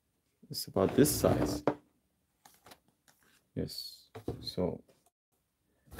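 A stiff cardboard folder rustles and slides against a box.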